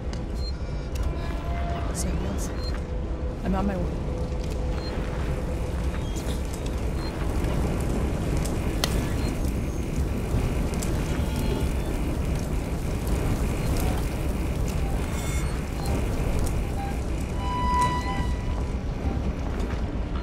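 A motion tracker beeps softly.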